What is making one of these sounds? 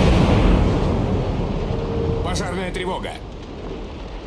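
Shells explode with rumbling roars that slowly fade.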